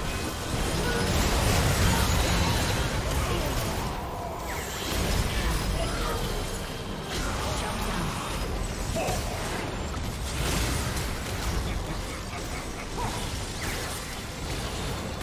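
Spell effects blast and crackle in a game battle.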